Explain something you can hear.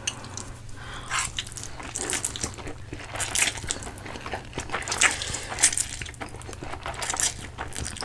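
A man slurps noodles loudly, close up.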